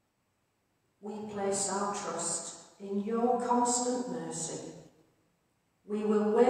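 An elderly woman speaks calmly into a microphone in a large echoing hall.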